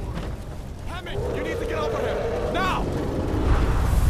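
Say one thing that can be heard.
A man shouts urgently nearby.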